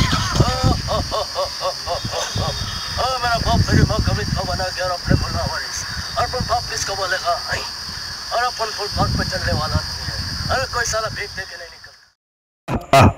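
A young man sings loudly and with animation.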